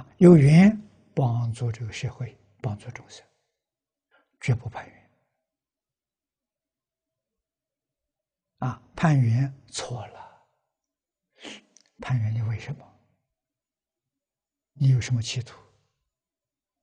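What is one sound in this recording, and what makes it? An elderly man speaks calmly in short phrases with long pauses, close to a lapel microphone.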